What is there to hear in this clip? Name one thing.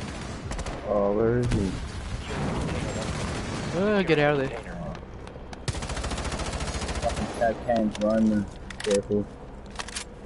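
Rapid gunshots crack nearby.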